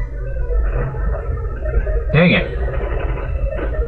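A retro video game attack sound effect plays.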